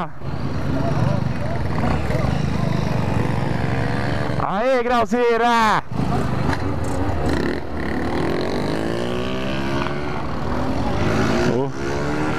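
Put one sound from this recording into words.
Motorcycle engines rumble and idle nearby.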